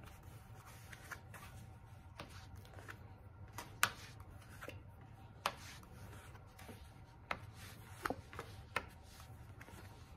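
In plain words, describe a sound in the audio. Playing cards riffle, flick and snap between hands close by.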